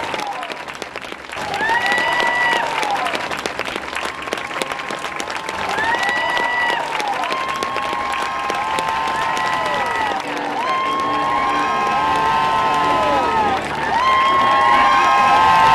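A crowd claps outdoors.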